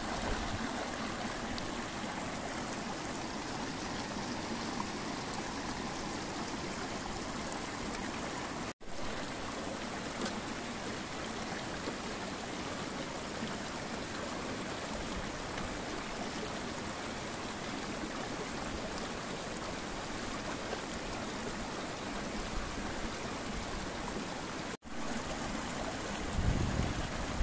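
A stream rushes steadily over stones close by.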